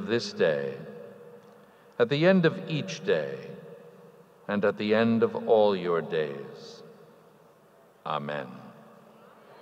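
An elderly man speaks slowly and formally through a microphone in a large echoing hall.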